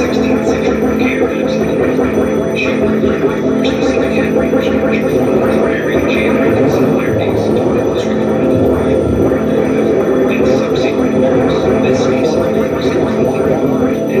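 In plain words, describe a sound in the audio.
Loud, droning electronic music plays through amplifiers.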